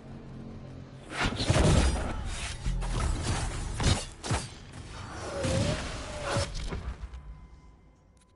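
Fire bursts and roars in loud explosions.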